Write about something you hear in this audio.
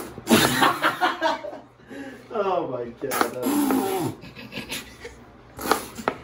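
A squeeze bottle squirts and sputters sauce.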